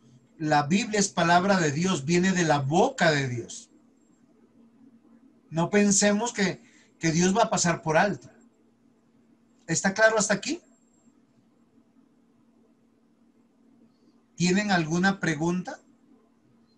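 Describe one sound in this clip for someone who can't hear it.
A man speaks calmly in pauses over an online call.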